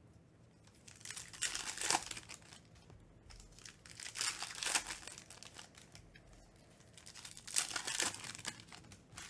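Foil packs crinkle and rustle in someone's hands.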